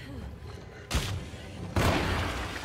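A pistol fires loudly.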